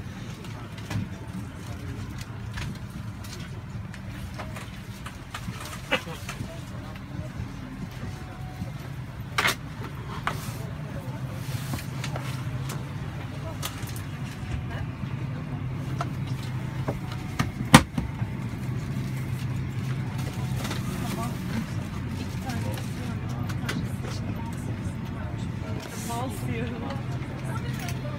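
Passengers murmur and chat quietly nearby.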